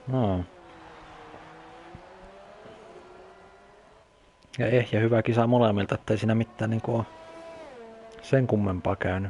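A racing car engine whines at high revs and shifts pitch.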